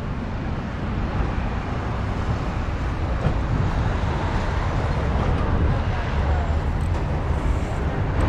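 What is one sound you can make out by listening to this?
City traffic hums in the distance.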